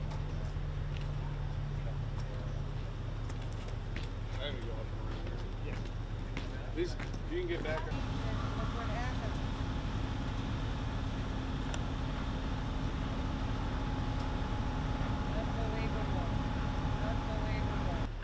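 A fire engine idles with a steady low rumble.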